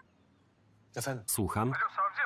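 A man talks into a phone calmly.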